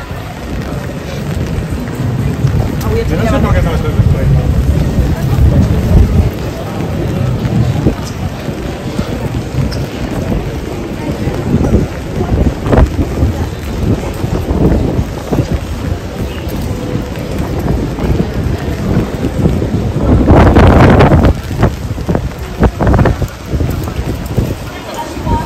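A crowd of passers-by murmurs nearby outdoors.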